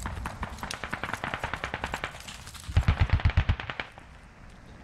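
Footsteps rustle quickly through dry bushes.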